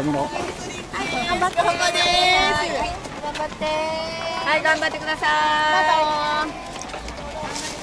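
A crowd of volunteers calls out cheers along a street.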